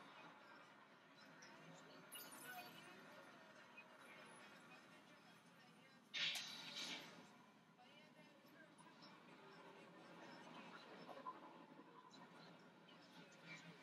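Game sound effects and music play from a television speaker.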